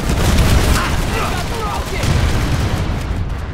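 A futuristic energy rifle fires.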